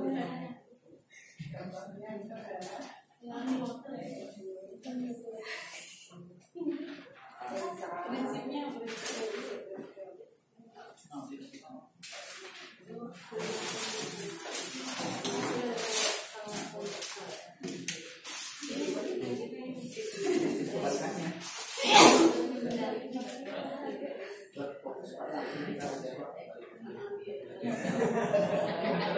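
Several women talk in small groups at the same time.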